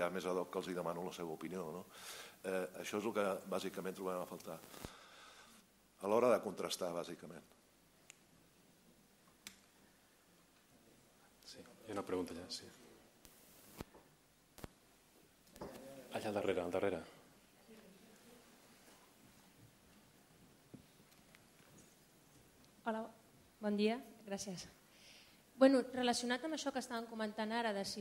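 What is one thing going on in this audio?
A man speaks into a microphone in a large room, with pauses between phrases.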